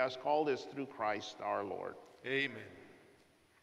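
A man chants loudly into a microphone in an echoing hall.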